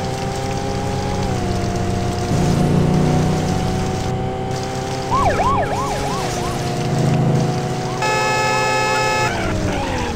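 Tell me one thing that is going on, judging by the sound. Car tyres screech in a skid.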